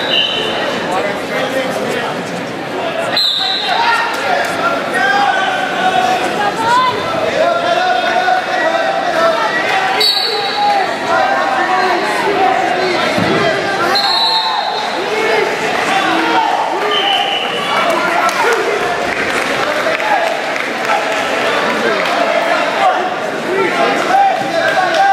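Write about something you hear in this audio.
Wrestlers scuffle and thump on a padded mat.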